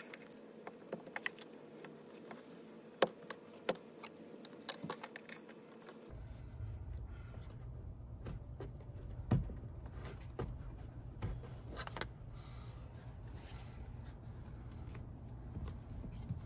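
A plastic pry tool clicks and scrapes against a car door panel.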